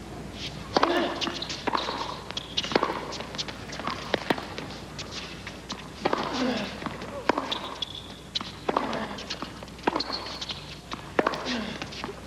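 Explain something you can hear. Tennis rackets strike a ball back and forth in a steady rally.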